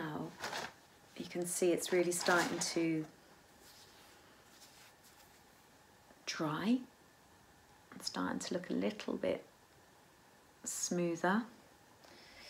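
A woman talks calmly, close by.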